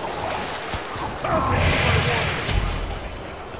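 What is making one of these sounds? A fiery magic blast whooshes and crackles.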